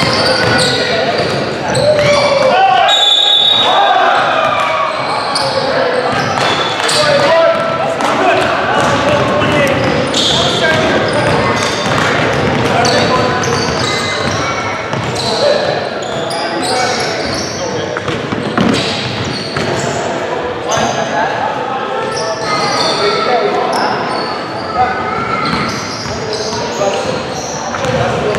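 Men shout and call out to each other across the court.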